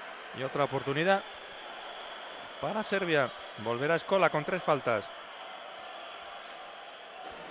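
A crowd murmurs softly in a large echoing arena.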